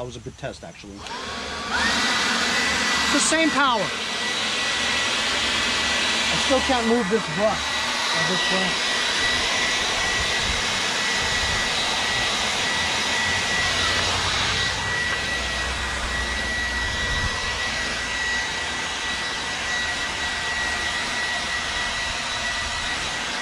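A battery leaf blower whirs steadily with a high whine.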